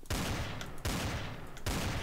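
A pistol fires a sharp shot.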